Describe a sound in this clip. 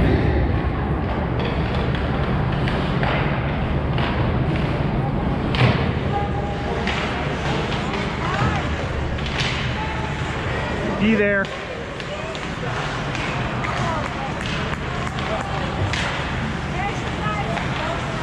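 Hockey sticks clack against a puck and each other in an echoing hall.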